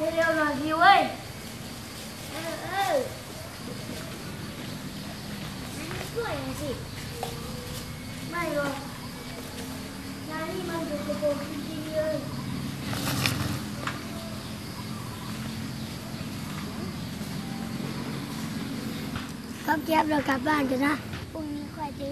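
Young children call out to each other in high, lively voices.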